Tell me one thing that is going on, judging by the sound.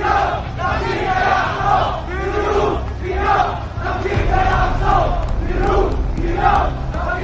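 A large crowd chants loudly in rhythm outdoors.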